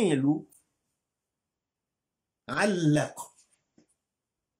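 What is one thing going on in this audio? An elderly man speaks in a raised, chanting voice close to a microphone.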